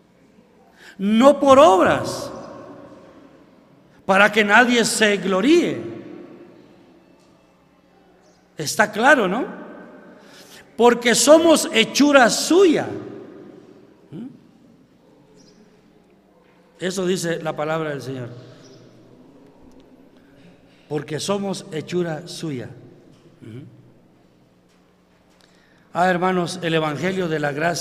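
An elderly man speaks with animation through a microphone, in bursts with pauses, echoing in a large hall.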